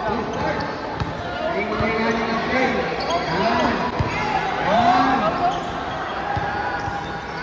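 A basketball bounces on a hard floor, echoing in a large hall.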